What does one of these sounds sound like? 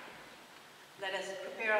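An older woman speaks calmly in a large echoing room.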